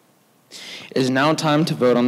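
A man speaks through a microphone into a large room, in a calm formal tone.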